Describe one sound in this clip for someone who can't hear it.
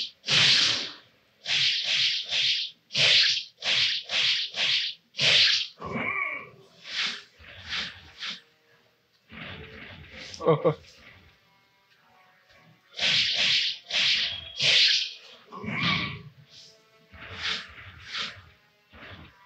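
Sword blades swish and slash in quick bursts.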